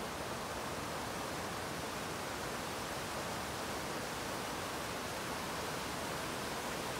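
A river rushes steadily over rocky rapids.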